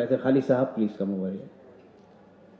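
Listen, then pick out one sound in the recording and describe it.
A man speaks firmly into a microphone, heard over a loudspeaker in an echoing hall.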